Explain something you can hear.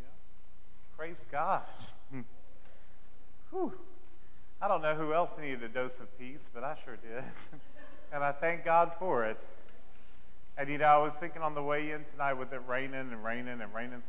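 A man speaks calmly through a clip-on microphone in an echoing hall.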